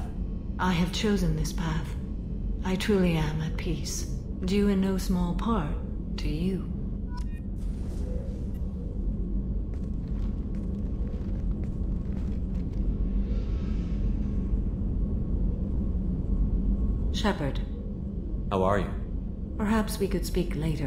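A woman speaks calmly in a low, even voice.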